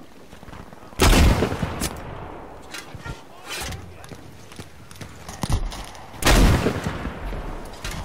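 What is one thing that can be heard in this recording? Loud explosions boom nearby and rumble away.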